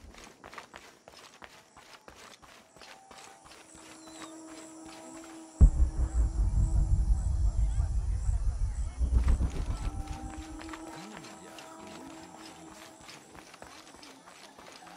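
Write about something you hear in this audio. Quick footsteps run over earth and grass.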